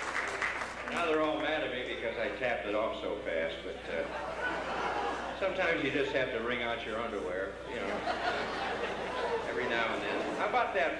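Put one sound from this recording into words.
A man talks into a microphone over a loudspeaker.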